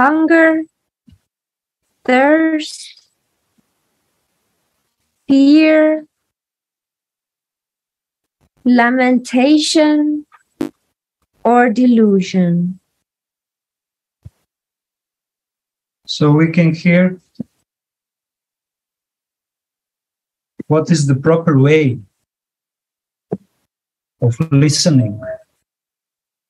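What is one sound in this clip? A man speaks in short phrases through an online call, with pauses between them.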